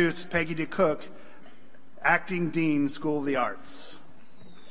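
An older man speaks calmly into a microphone in a large hall.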